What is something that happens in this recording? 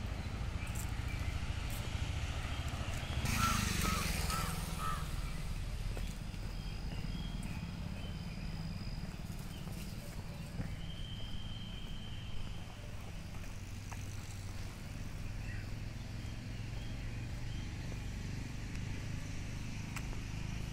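Traffic hums steadily from a nearby road.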